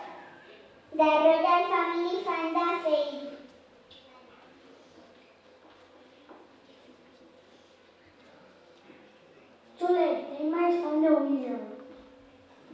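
A child speaks expressively in an echoing hall.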